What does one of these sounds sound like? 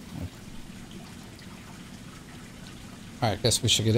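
Water pours from a hose into a pool.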